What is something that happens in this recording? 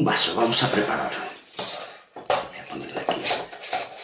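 A metal strainer clinks against a shaker tin.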